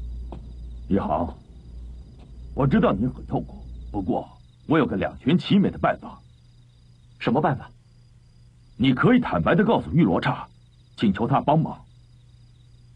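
An elderly man speaks sternly and close by.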